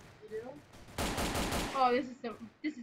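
A machine gun fires a short burst.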